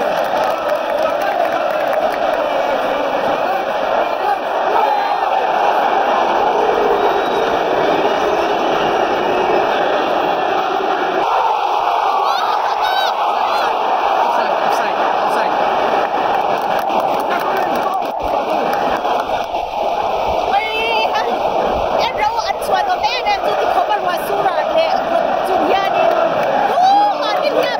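A large stadium crowd sings and chants loudly in the open air.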